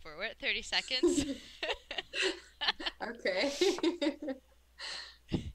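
A woman laughs over an online call.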